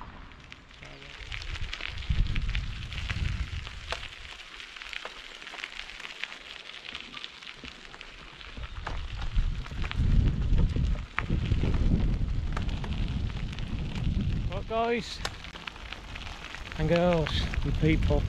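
Wind rumbles and buffets against the microphone.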